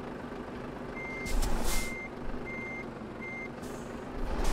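A turn signal ticks steadily.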